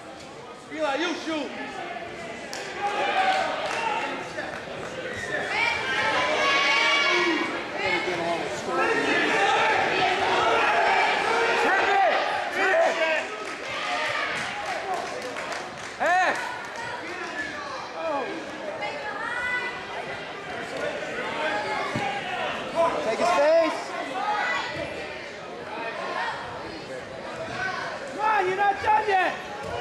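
Wrestlers' feet thump and squeak on a mat.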